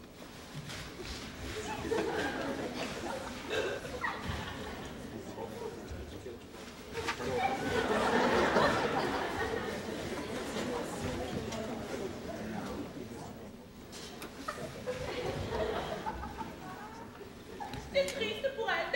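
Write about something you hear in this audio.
Plastic costumes crinkle and rustle as dancers move.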